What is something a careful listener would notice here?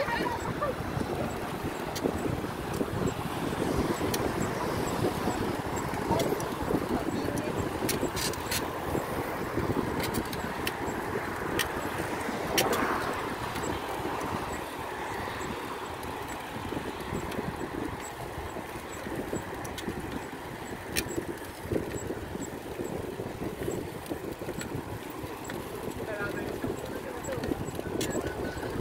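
Wind rushes past while riding outdoors.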